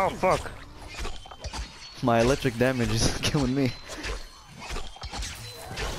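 Heavy blows strike flesh with wet thuds.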